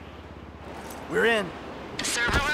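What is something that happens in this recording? A man curses in a low, strained voice.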